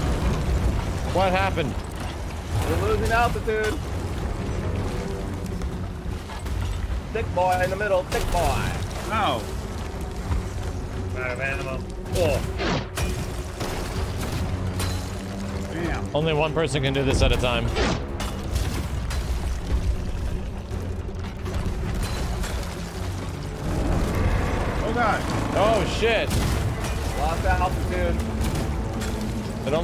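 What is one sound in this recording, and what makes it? Men talk with animation through microphones.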